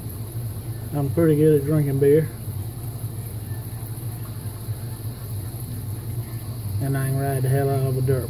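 A man speaks briefly in a drawn-out voice close by.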